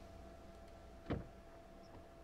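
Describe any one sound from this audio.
A car door opens with a click.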